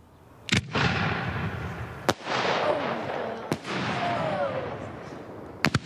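Fireworks crackle and hiss after each burst.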